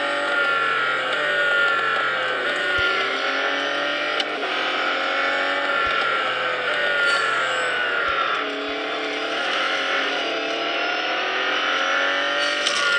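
A racing car engine roars at high speed, its pitch rising and dipping through gear shifts.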